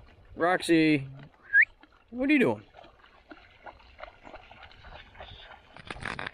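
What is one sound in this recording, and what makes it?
A dog splashes as it wades through shallow water.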